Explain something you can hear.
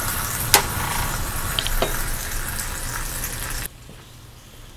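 Sauce bubbles and sizzles in a pot.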